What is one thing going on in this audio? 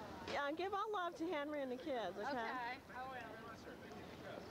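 A young woman speaks animatedly close by.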